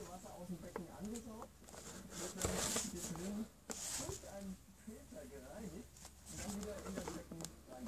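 Hands turn a small cardboard box over.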